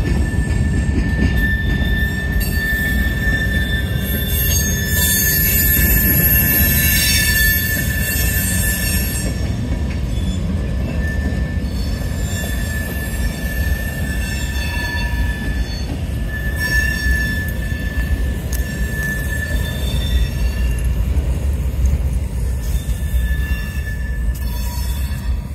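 Freight cars rumble and clatter along a track close by.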